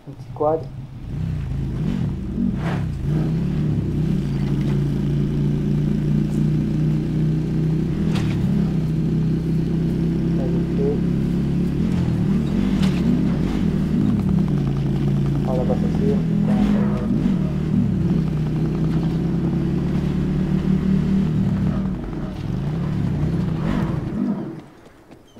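A quad bike engine hums steadily as it drives along.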